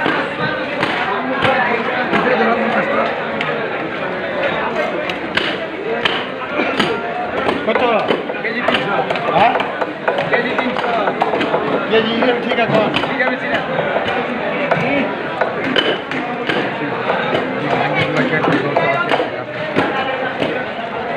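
A crowd of men talk loudly all around.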